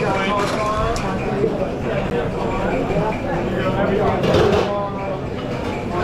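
A metal tray clanks as it is handled.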